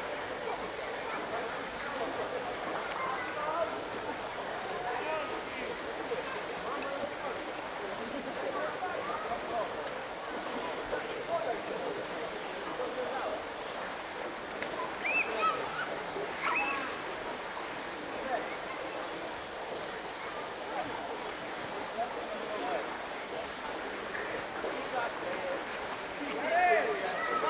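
A crowd of children and adults chatter and shout outdoors at a distance.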